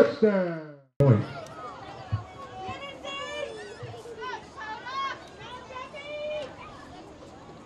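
Men shout instructions from a distance.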